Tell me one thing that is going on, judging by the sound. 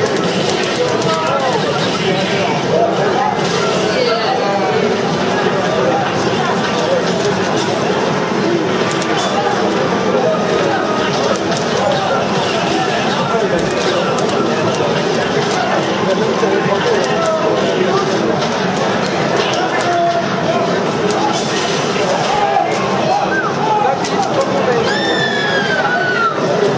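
Punches and kicks land with sharp smacks in a fighting game.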